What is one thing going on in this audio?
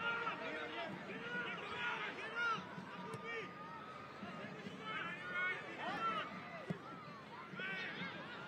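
A crowd murmurs and cheers in an open-air stadium.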